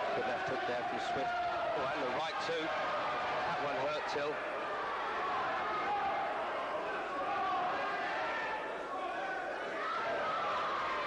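Boxing gloves thud against bodies in quick blows.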